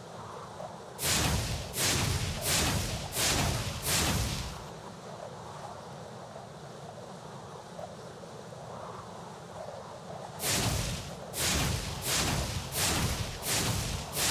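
A small dragon breathes out bursts of roaring fire.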